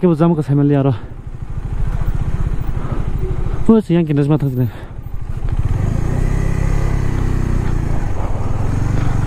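A motorcycle engine idles with a low, steady throb.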